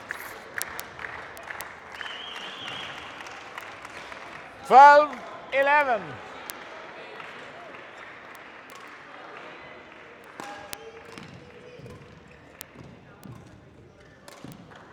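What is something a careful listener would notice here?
Rackets strike a shuttlecock back and forth with sharp pops.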